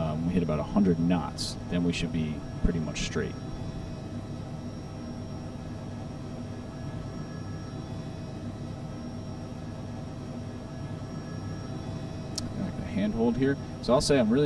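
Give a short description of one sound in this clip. A helicopter engine drones steadily.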